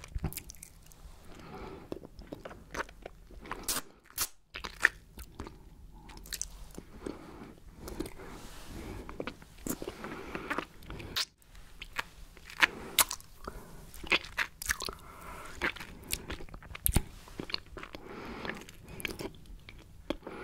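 A woman sucks and licks a lollipop close to a microphone, with wet smacking mouth sounds.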